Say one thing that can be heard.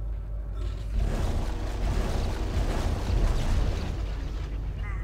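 An energy weapon fires with a loud hissing blast.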